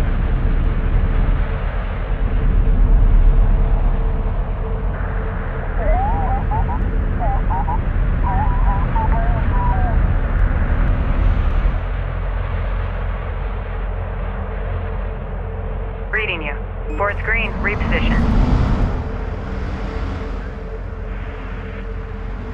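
A heavy vehicle engine rumbles low and steadily.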